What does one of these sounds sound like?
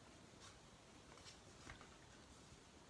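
A wooden board shifts and taps on a table.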